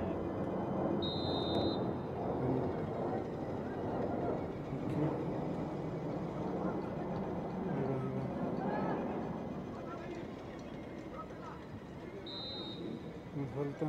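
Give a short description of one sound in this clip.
A referee's whistle blows short and sharp.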